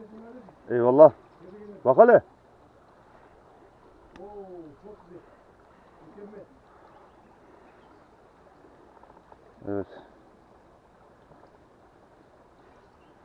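A shallow stream trickles nearby.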